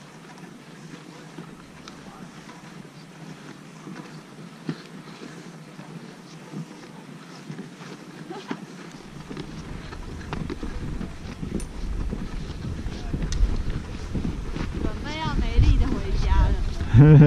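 Boots crunch on snow with each step.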